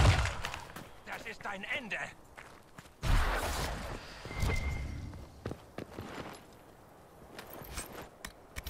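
Weapons clash and strike in combat.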